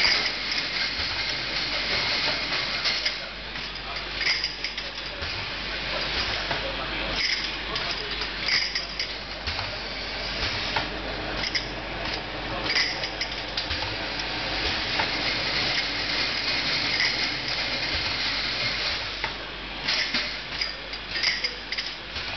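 Glass jars clink together on a conveyor.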